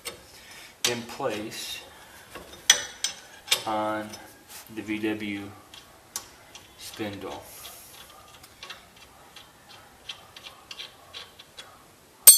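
A loose metal joint clunks and rattles as a hand works it back and forth.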